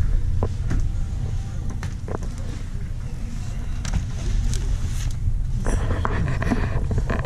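A shopping cart rolls along a hard floor with a low rumble.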